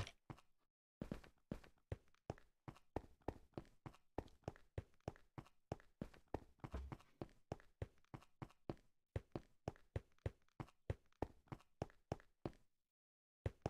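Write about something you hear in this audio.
Footsteps tap quickly and steadily on hard ground.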